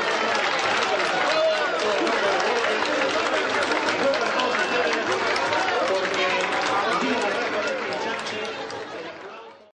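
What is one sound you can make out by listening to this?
A crowd of men and women sing together loudly.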